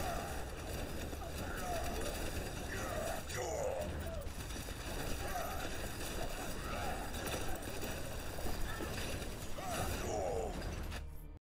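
Fiery blasts whoosh and roar in quick bursts.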